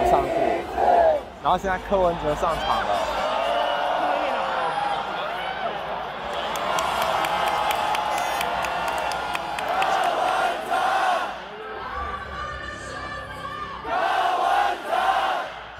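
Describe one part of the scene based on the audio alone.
A large crowd chants and cheers loudly outdoors.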